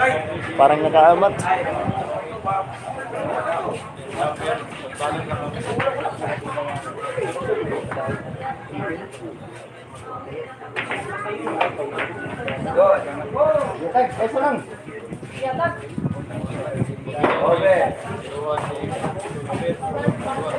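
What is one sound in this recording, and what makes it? Men and women chat and call out nearby in a lively room.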